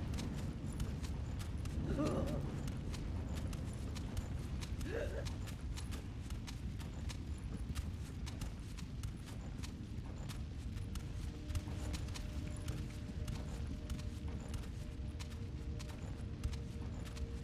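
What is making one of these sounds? Soft footsteps patter on a wooden floor.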